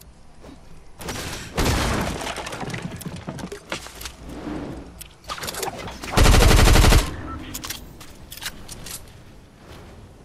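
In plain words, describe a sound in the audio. Footsteps clatter quickly up wooden ramps in a video game.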